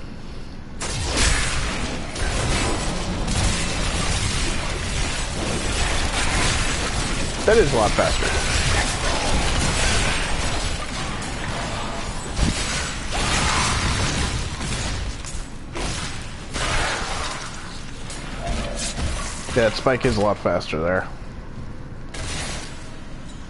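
Weapons clash and hit in a rapid, noisy fight.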